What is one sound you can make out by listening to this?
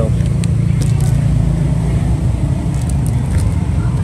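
A plastic bag crinkles as a hand picks it up.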